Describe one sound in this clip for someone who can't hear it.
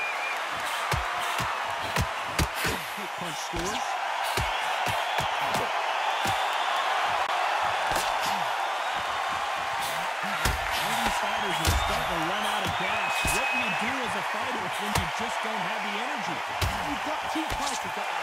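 Gloved punches land with dull thuds.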